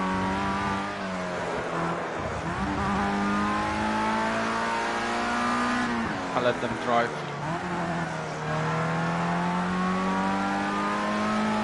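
A racing car engine whines loudly, rising in pitch and dropping sharply with each gear change.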